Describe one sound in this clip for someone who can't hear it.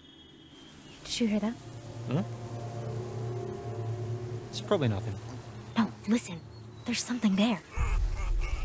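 A young woman speaks softly and earnestly close by.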